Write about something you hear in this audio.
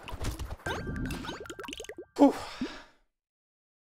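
Electronic game sound effects crackle and chime.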